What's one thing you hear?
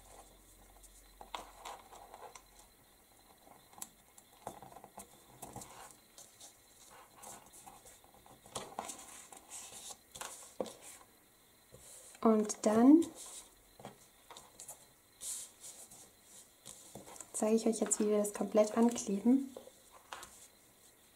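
Card paper and ribbon rustle and scrape softly as hands handle them.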